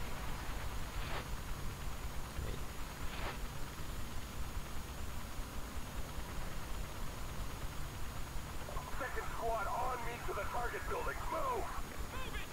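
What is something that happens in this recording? A helicopter's rotors thump overhead.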